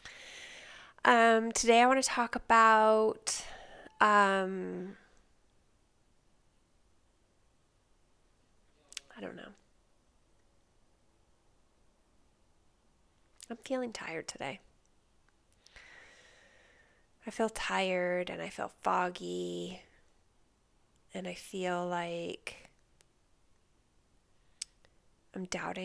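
A woman speaks calmly and closely into a microphone, with pauses.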